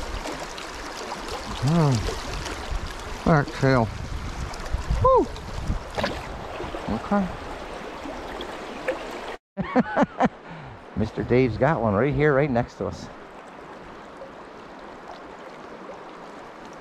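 A river rushes and burbles over stones nearby.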